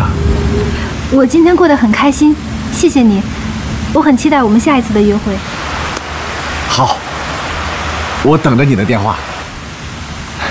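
A young woman speaks softly and warmly close by.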